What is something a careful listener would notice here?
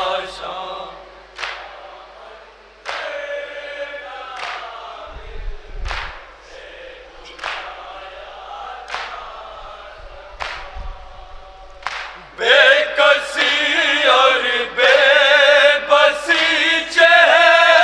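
Young men chant together through a microphone in a large echoing hall.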